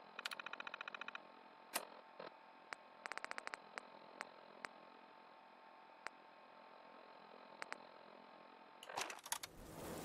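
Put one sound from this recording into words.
Electronic menu beeps and clicks sound in quick bursts.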